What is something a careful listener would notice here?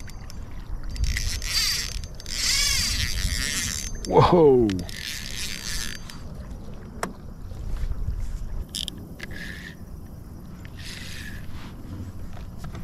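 A fishing reel's drag buzzes as line pulls out.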